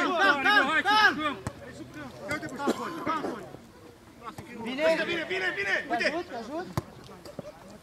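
Men shout to each other outdoors across a playing field.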